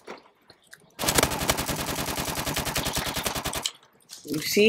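A rifle fires in a rapid, steady burst.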